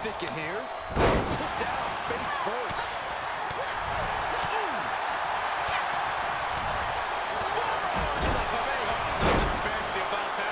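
Bodies slam heavily onto a wrestling ring mat.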